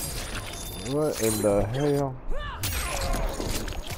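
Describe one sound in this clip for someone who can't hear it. Blades stab and slice into flesh with wet squelches.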